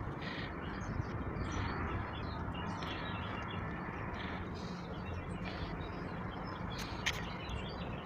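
Construction work clanks and rumbles at a distance, outdoors.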